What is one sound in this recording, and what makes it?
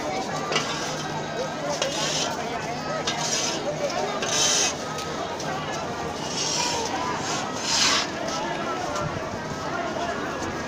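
Footsteps shuffle on pavement nearby.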